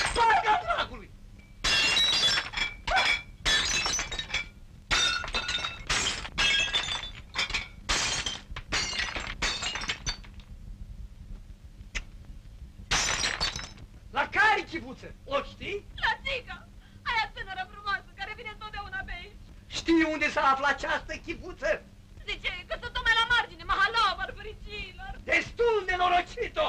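A middle-aged woman speaks with emotion.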